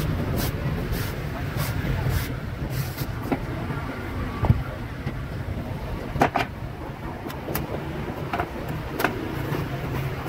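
A machete chops into a coconut with sharp knocks.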